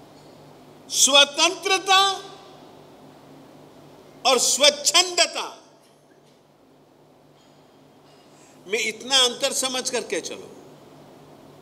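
An elderly man speaks with animation into a close microphone, in short bursts with pauses.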